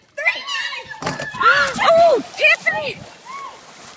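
A person splashes into an outdoor pool.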